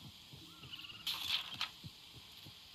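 A paper catalog page turns.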